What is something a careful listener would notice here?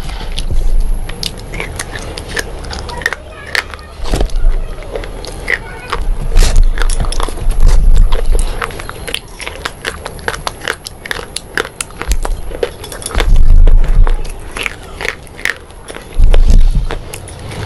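A woman bites into crisp food with a loud crunch.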